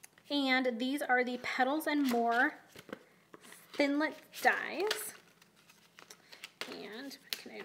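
Stiff paper sheets rustle and flap as they are shuffled.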